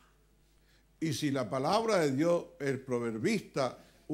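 An elderly man speaks with emphasis through a microphone in an echoing room.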